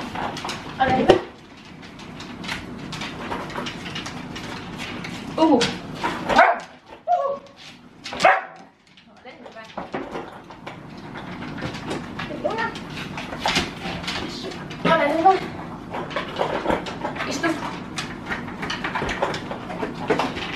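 A young woman talks to dogs with animation, close by.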